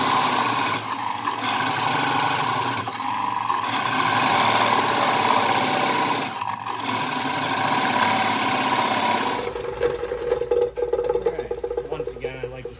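A wood lathe spins with a steady whir.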